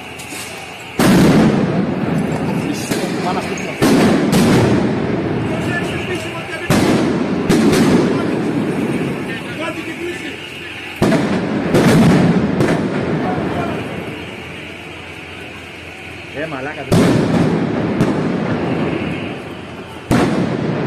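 Loud firecrackers and flares bang and boom nearby, echoing between buildings.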